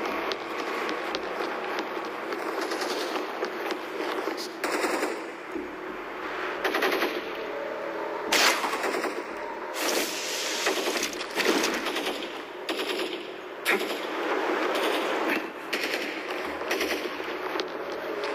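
Footsteps walk steadily across a hard stone floor.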